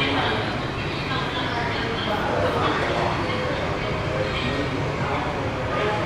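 Men chat quietly in the background.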